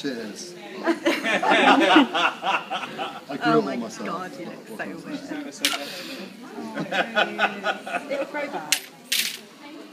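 A young man laughs loudly nearby.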